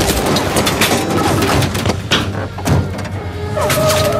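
A van door slides shut with a bang.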